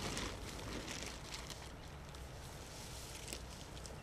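A tarp flaps and rustles.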